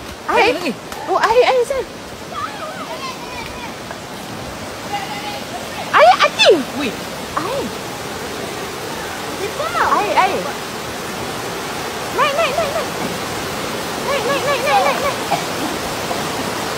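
Floodwater rushes and roars steadily outdoors.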